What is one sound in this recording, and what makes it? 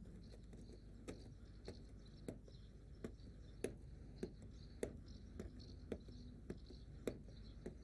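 Footsteps crunch slowly on a dirt path.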